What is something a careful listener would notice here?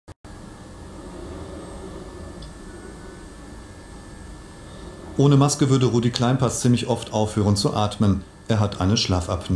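A sleeping man breathes softly through a hissing air mask.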